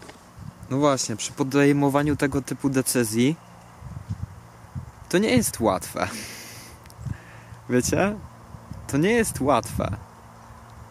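A young man talks casually and close up.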